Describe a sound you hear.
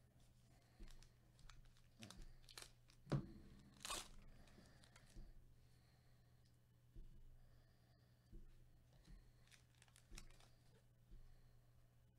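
Plastic card sleeves rustle and crinkle as cards are handled.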